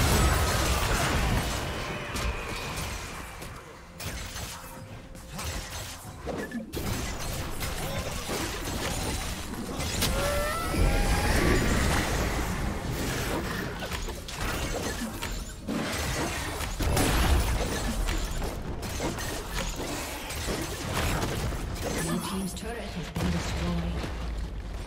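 Video game spell effects whoosh and clash rapidly in a busy battle.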